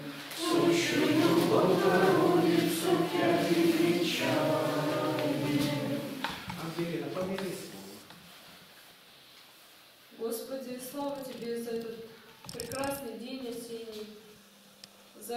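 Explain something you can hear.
A group of men and women sing a slow prayer together.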